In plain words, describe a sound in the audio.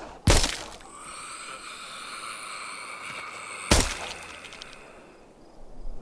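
A zombie groans and snarls.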